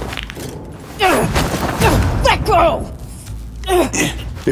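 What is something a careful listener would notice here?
A woman groans and strains, close by.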